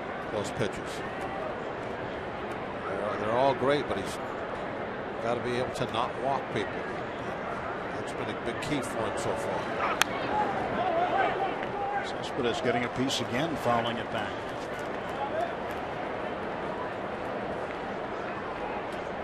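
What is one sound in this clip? A stadium crowd murmurs.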